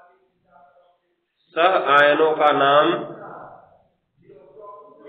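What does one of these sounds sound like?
A man speaks close by, explaining calmly.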